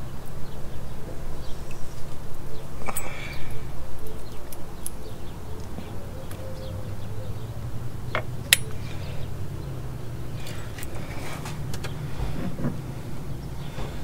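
Metal parts click and clink as they are worked by hand.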